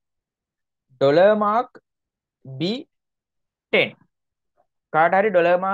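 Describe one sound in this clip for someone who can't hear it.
A young man speaks calmly into a close microphone, in short bursts.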